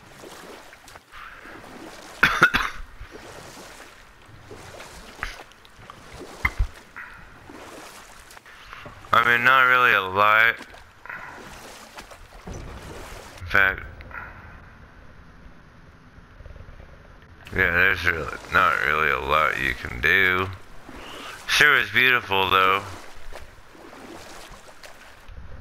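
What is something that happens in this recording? Oars splash softly in water as a boat is rowed.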